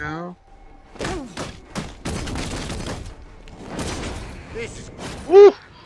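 Heavy punches and kicks thud in a fast brawl.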